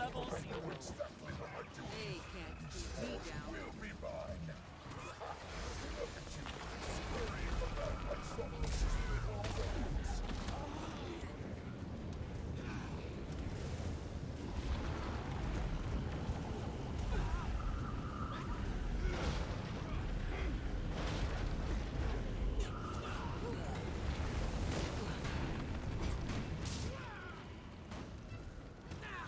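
Spell blasts crackle and boom.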